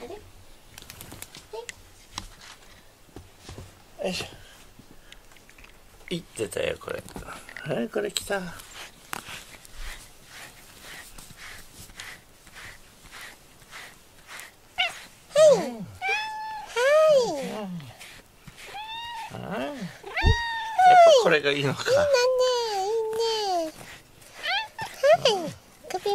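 A brush rustles through a cat's fur in quick strokes.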